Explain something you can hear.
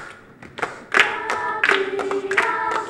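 A children's choir sings.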